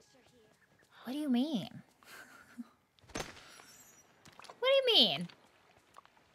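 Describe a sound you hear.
A young woman exclaims with animation close to a microphone.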